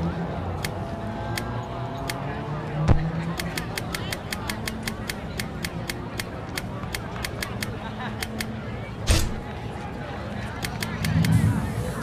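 A menu selection ticks with short, sharp clicks, quickly and often.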